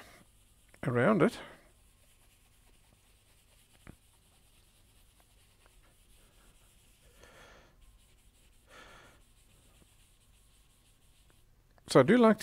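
A pencil scratches and shades across paper.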